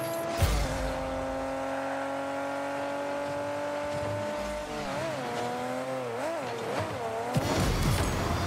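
A car engine hums steadily and its pitch wavers.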